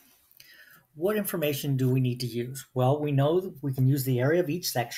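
A man speaks calmly and clearly into a nearby microphone.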